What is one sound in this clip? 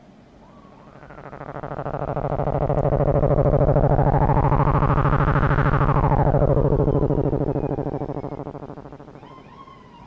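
A loud buzzing synthesizer drone swells up, warbles and fades away.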